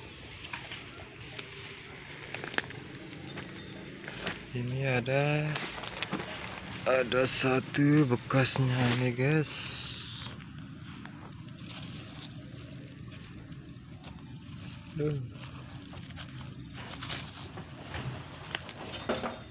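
Leafy plants rustle as someone brushes through them.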